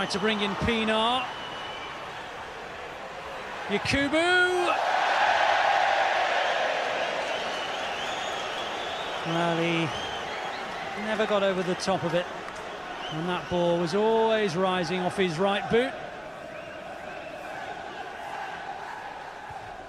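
A large stadium crowd murmurs and swells into a roar.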